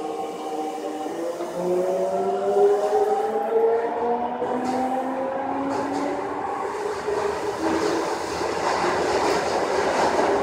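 An electric train's motor whines, rising in pitch as the train speeds up.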